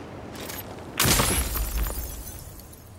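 A rock cracks and breaks apart.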